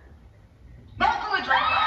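A middle-aged woman speaks into a microphone, heard through a television speaker.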